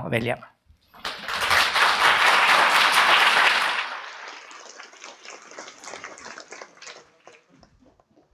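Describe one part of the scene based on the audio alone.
An audience applauds loudly, then the clapping slowly thins out.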